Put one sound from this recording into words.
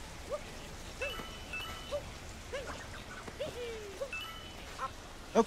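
Bright coin chimes ring out several times.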